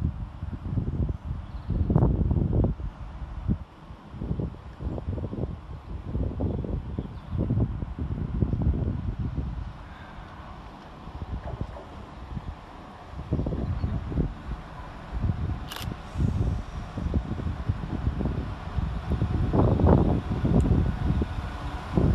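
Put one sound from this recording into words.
Wind gusts outdoors, buffeting loudly.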